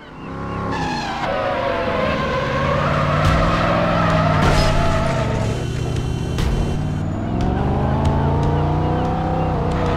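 Tyres screech as a car skids.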